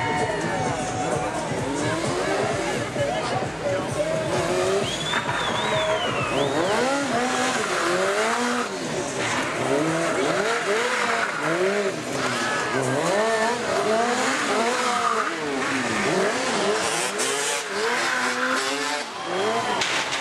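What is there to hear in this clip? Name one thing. A crowd cheers in the distance.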